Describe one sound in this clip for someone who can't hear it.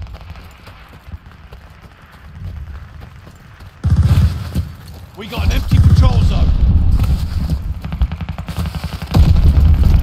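Boots crunch quickly through snow.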